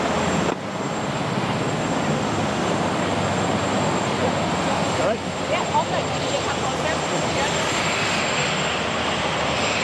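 A crowd of people murmurs and chatters nearby outdoors.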